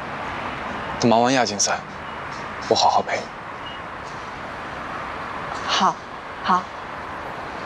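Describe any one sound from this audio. A young man speaks softly and calmly nearby.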